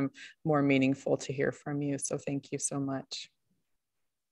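A woman speaks warmly over an online call.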